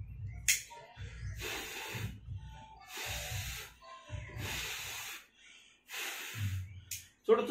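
A man blows short, breathy puffs several times.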